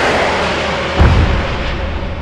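A tank gun fires with a sudden loud blast.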